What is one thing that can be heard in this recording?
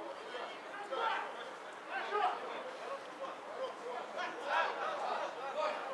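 Men shout to each other at a distance outdoors.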